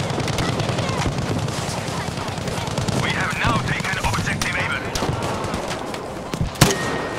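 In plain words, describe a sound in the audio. Explosions boom and rumble in the distance.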